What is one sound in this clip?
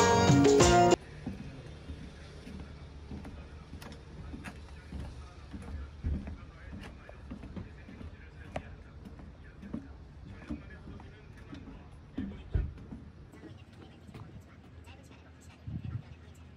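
Footsteps thud on wooden boards at a steady walking pace.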